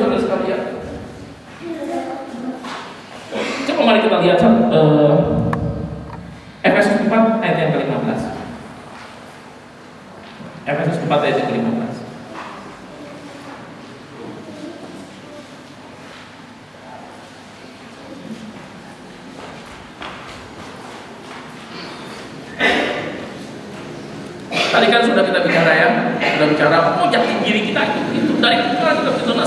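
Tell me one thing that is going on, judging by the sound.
A middle-aged man speaks with animation through a microphone and loudspeakers in an echoing room.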